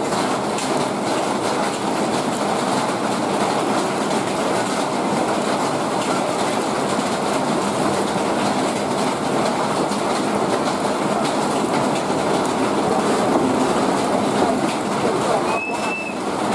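A rail tank wagon rumbles and clanks slowly along the track close by.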